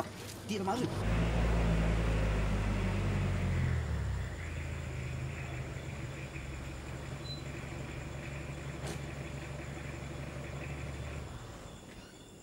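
A car engine idles nearby.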